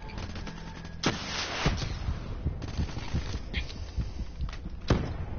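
Gunshots fire in bursts with loud bangs.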